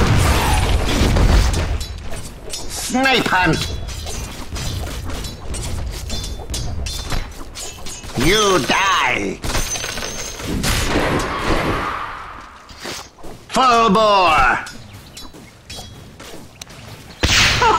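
Fighting video game effects clash with rapid hits and blasts.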